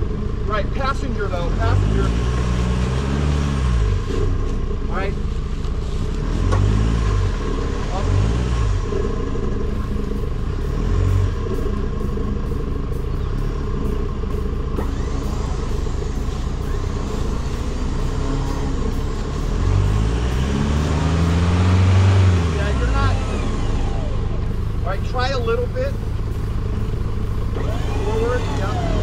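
A truck engine idles nearby.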